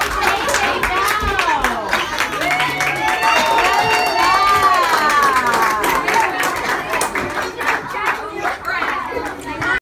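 Young children sing together close by.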